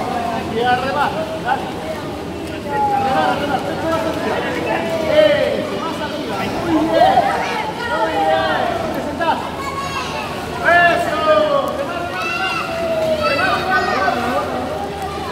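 Children shout and call out with excitement in an echoing indoor pool.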